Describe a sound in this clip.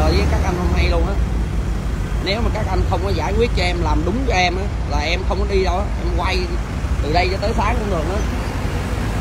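Men talk loudly and with animation close by.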